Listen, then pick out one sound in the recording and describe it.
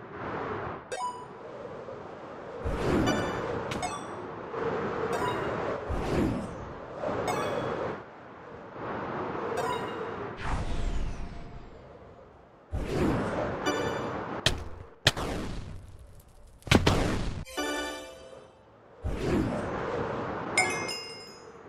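Short bright game chimes ring now and then.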